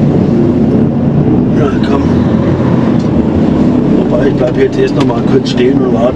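A heavy diesel truck engine rumbles, heard from inside the cab.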